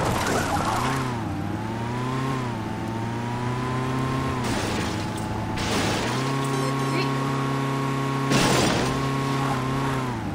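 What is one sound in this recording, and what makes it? A car engine revs at speed, rising and falling in pitch.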